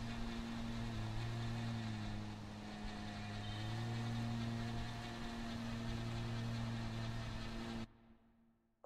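A lawn mower engine hums steadily.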